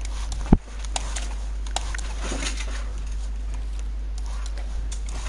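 Game building pieces snap into place with quick clacks.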